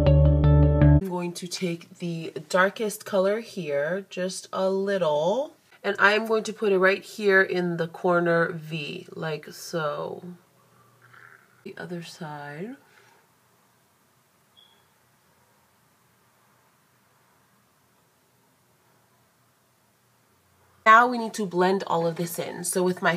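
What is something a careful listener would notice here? A young woman speaks calmly and close by.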